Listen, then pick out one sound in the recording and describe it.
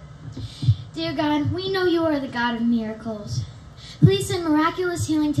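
A second girl sings into a microphone.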